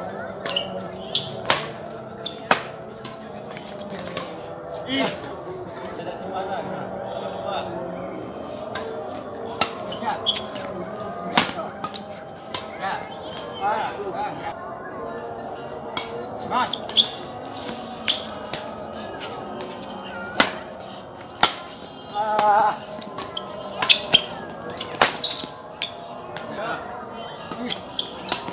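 Rackets hit a shuttlecock in quick, sharp smacks.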